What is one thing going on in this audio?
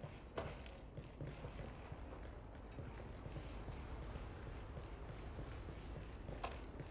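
Soft footsteps shuffle slowly on a hard floor.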